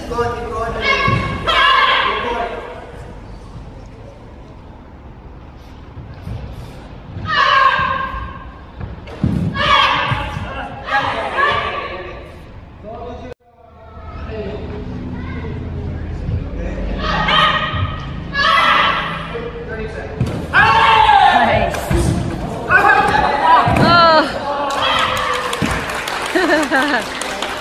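Men shout sharp, forceful cries in a large echoing hall.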